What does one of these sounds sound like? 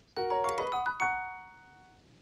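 A short bright chiming melody plays.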